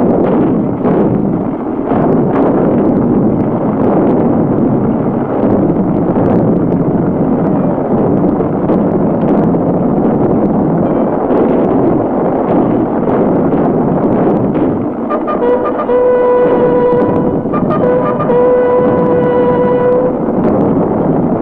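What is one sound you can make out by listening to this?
Horses gallop with hooves drumming on the ground.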